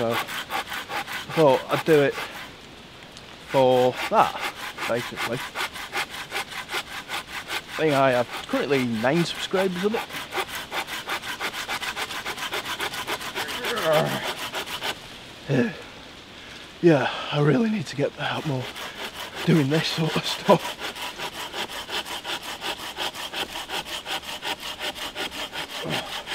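A hand saw cuts back and forth through wood in a steady rhythm.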